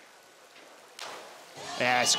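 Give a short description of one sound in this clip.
A diver splashes into a pool.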